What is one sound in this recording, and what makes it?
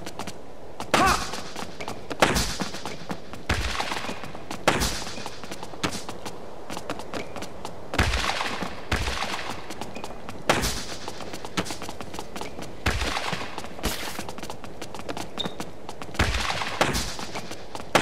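Tennis balls are struck with sharp thwacks, back and forth.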